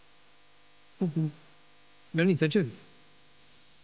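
A young man speaks tensely and close by.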